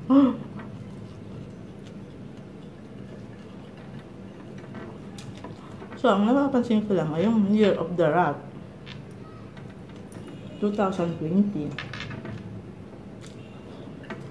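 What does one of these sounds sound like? A woman chews food with soft smacking sounds.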